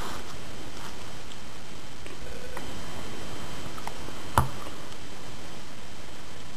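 Playing cards rustle and tap softly as they are shuffled in the hands.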